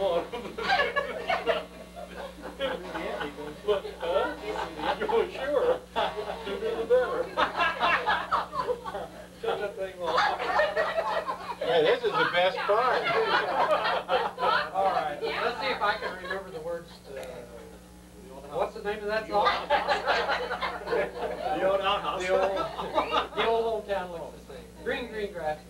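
Several elderly men talk and laugh together nearby.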